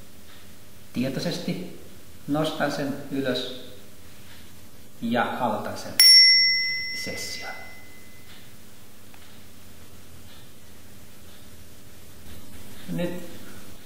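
An older man speaks calmly nearby.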